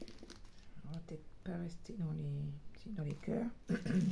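A plastic sleeve crinkles as it is handled.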